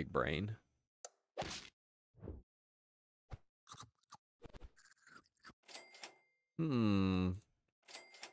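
Short electronic game sound effects blip and chime.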